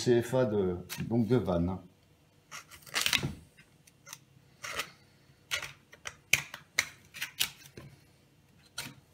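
A knife slices through raw meat with soft scraping sounds.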